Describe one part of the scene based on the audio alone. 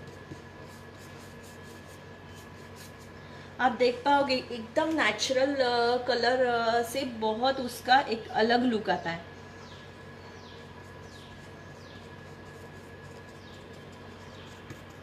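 A paintbrush dabs and brushes softly against a board.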